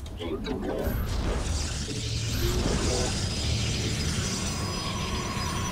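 Video game weapons fire and blasts crackle during a battle.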